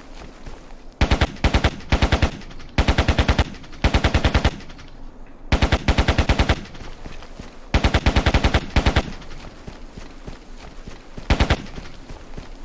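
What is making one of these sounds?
A rifle fires loud rapid bursts.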